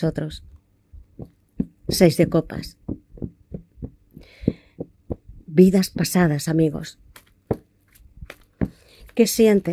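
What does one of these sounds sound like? Playing cards riffle and flick as they are shuffled.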